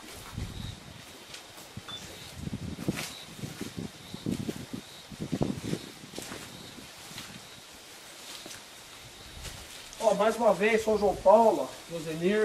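Footsteps crunch over grass and gravel.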